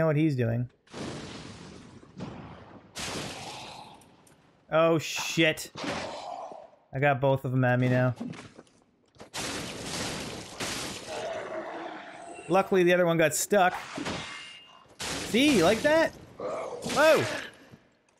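A man grunts and shouts with effort.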